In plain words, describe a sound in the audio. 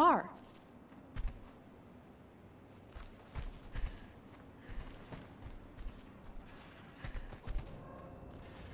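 Footsteps crunch on gravel as someone runs.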